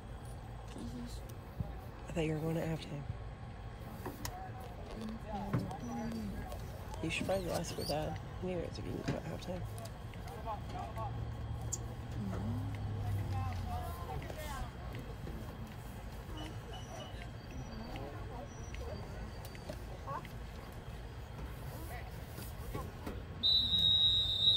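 Men and boys talk and call out across an open field outdoors.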